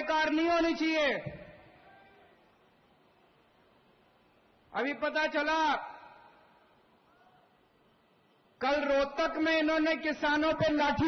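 A middle-aged man speaks forcefully into a microphone, with long pauses, his voice echoing outdoors.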